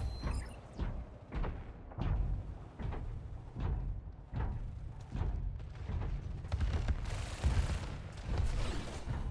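Gunfire and blasts crack out in repeated bursts.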